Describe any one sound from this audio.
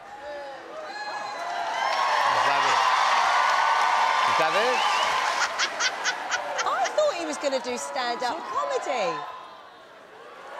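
A man laughs heartily nearby.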